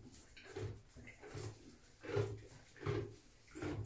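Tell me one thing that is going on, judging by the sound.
A donkey munches and snuffles at hay.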